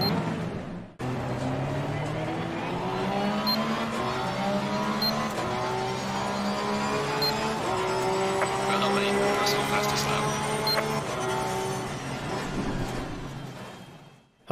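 A racing car engine roars and climbs through the gears.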